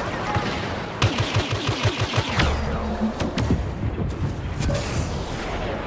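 Blaster guns fire in quick bursts.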